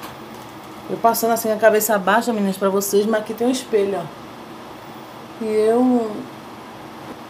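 A woman talks close up with animation.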